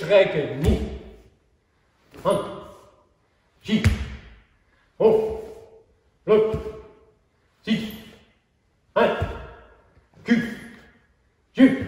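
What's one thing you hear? An elderly man calls out short, sharp words at regular intervals in an echoing hall.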